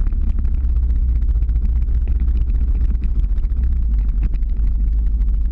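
Skateboard wheels rumble steadily on rough asphalt.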